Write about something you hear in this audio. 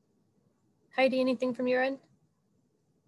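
A woman says a few words over an online call.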